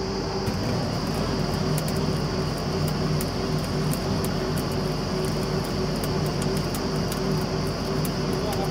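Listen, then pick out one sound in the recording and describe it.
A drilling rig engine roars steadily outdoors.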